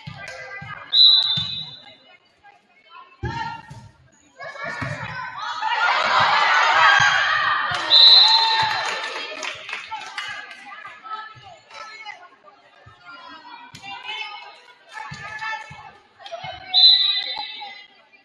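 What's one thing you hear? A referee's whistle blows in short sharp blasts.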